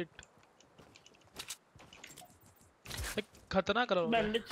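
Footsteps tap on a hard path.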